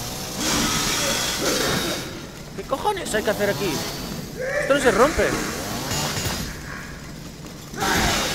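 A chainsaw roars loudly.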